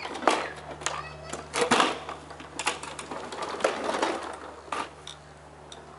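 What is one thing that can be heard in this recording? A lawnmower rattles as it is pushed over hard ground.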